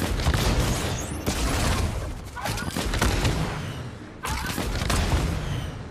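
A rocket blasts upward with a loud whoosh.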